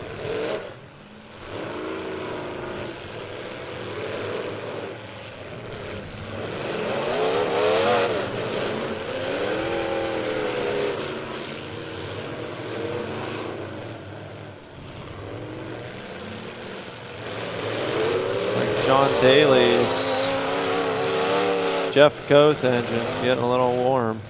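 Car engines rev and roar loudly, rising and falling in pitch.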